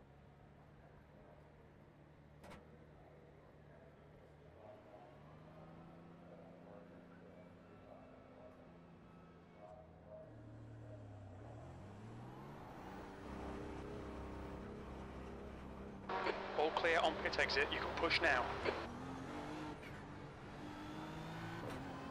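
A race car engine idles, revs up and accelerates through the gears.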